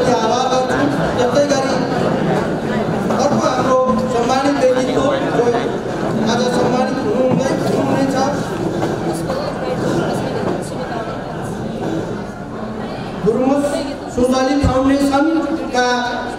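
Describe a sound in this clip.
A middle-aged man speaks steadily into a microphone over a loudspeaker, in a large echoing room.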